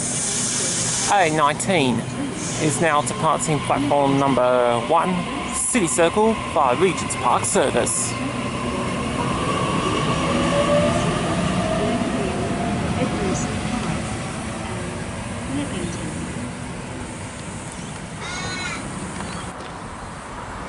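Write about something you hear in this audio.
A train pulls away along the platform with a rising electric whine.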